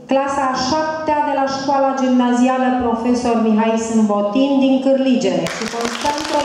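A woman sings into a microphone in a large hall.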